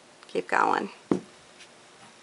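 A wine glass is set down on a table with a soft knock.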